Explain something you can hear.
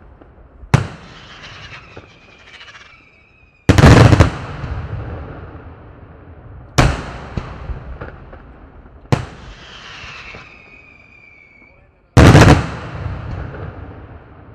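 Small firecrackers crackle and pop after the bursts.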